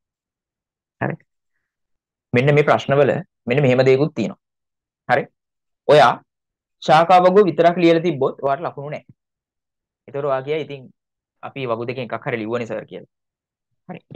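A young man talks calmly and close to a microphone, with short pauses.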